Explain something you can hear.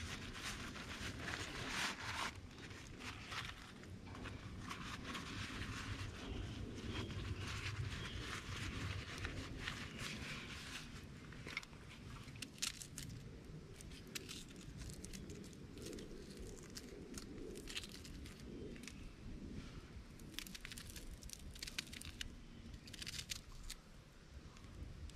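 A wood fire crackles and pops outdoors.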